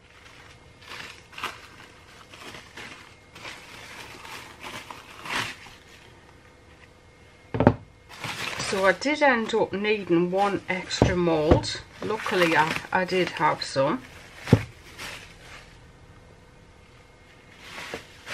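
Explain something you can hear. Plastic wrap crinkles and rustles as hands peel it.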